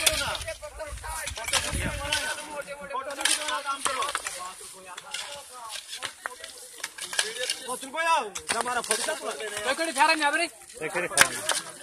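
Shovels scrape and crunch into loose gravel.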